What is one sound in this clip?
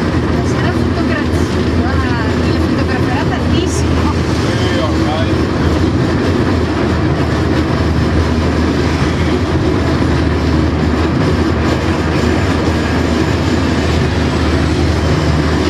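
A train engine rumbles steadily as the train rolls along the track.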